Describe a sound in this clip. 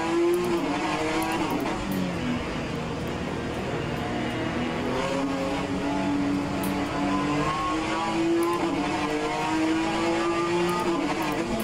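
A racing car engine roars steadily, its pitch rising and falling as it shifts gears.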